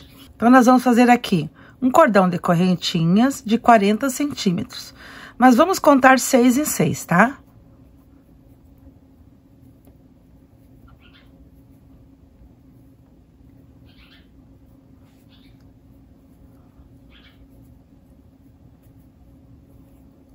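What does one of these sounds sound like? A crochet hook softly scrapes and pulls yarn through stitches.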